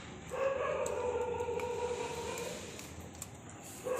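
A large dog chews on dry food.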